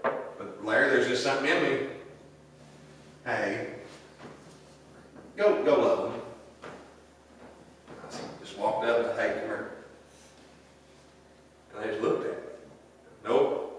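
A middle-aged man speaks with animation through a microphone in a large echoing hall.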